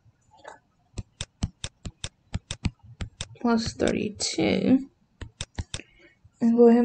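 A pen taps and scratches on a writing tablet.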